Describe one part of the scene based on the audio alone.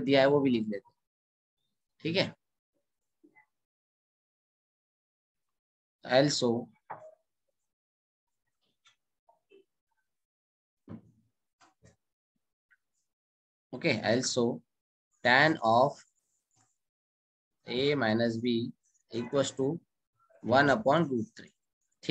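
A young man speaks calmly and explains, heard close through a microphone.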